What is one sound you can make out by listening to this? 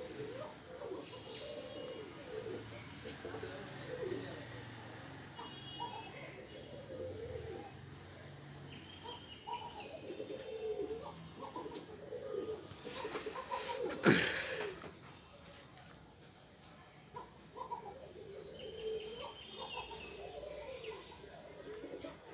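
A pigeon coos in deep, throaty calls, close by.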